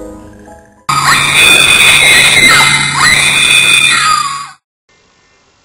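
A young girl screams loudly.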